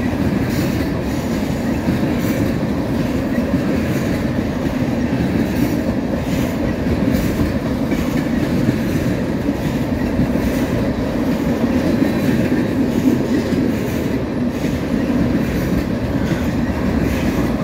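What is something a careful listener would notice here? A long freight train rumbles past close by, steady and loud.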